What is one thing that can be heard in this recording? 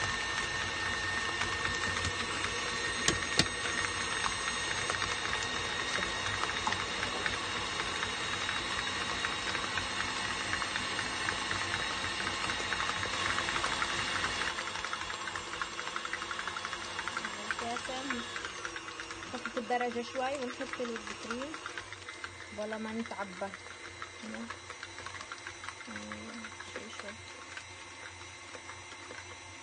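An electric stand mixer whirs steadily, then runs more quietly.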